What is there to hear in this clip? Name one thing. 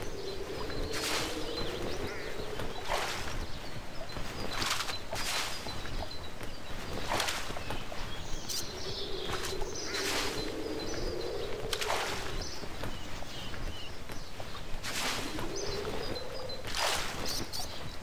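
Water splashes softly as a fishing line is cast.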